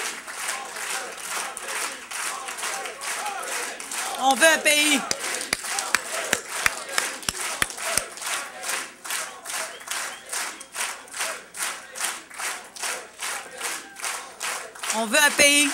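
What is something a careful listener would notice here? An audience claps steadily.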